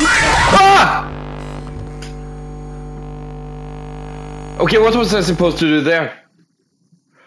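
Loud static hisses and buzzes.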